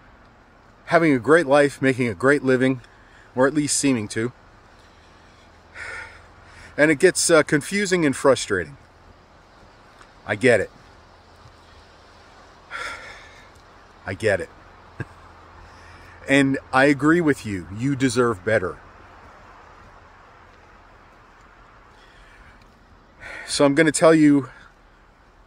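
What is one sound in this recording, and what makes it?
A middle-aged man talks calmly and earnestly close by, outdoors.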